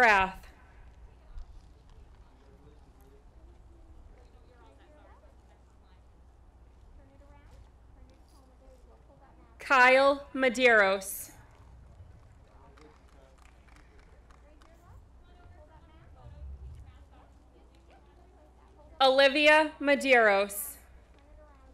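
A woman reads out through a loudspeaker outdoors, with short pauses between.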